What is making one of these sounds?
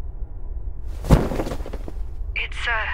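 A heavy cloth cover swooshes as it is pulled away.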